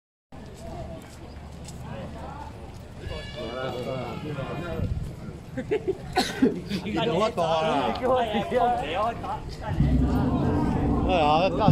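Men and women in a crowd chatter and call out nearby outdoors.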